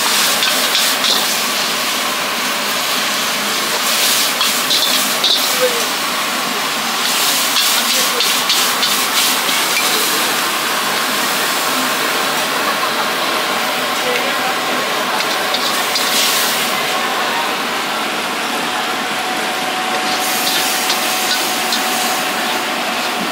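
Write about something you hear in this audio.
Food sizzles loudly in a hot wok.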